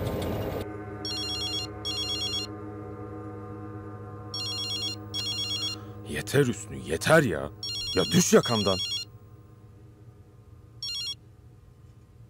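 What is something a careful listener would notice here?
A mobile phone rings with short repeated electronic beeps.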